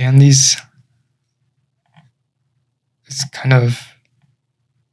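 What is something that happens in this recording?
A young man speaks close to a microphone in short bursts.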